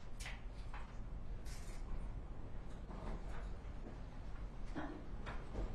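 Handcuffs click shut.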